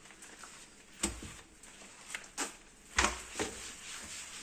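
Something knocks against a cabinet door a few times.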